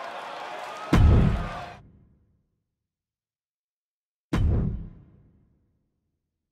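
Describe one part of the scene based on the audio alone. A deep booming hit sounds twice, each time ringing out briefly.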